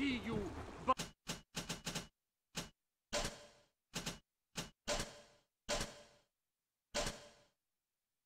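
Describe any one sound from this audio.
Menu selections click one after another.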